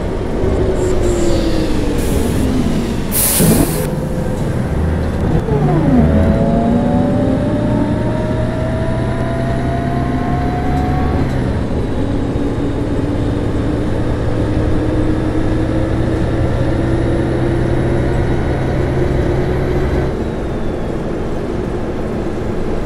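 A diesel city bus engine accelerates.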